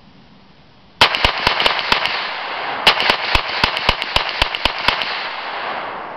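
A 9mm carbine fires a rapid string of shots.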